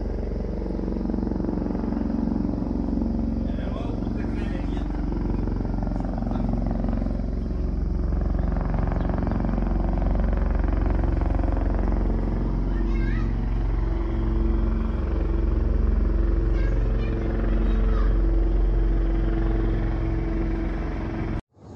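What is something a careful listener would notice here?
A helicopter drones steadily overhead with a low rotor thump.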